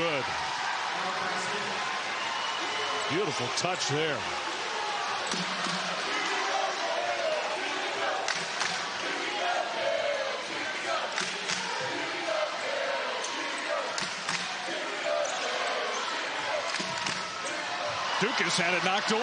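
A basketball bounces on a hardwood floor.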